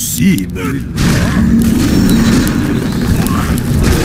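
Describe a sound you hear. A blast of fire roars past.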